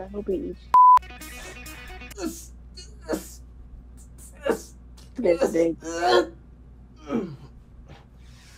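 A young woman talks through an online call, heard through a microphone.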